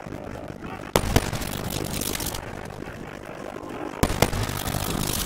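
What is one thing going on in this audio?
Gunshots crack loudly.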